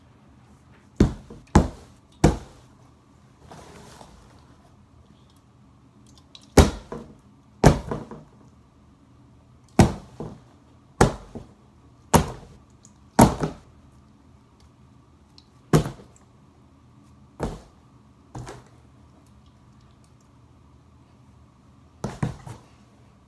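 A metal can bangs hard against a cardboard box again and again.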